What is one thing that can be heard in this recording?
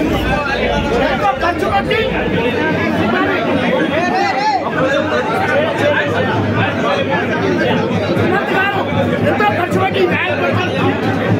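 A middle-aged man speaks into a handheld microphone amid the crowd.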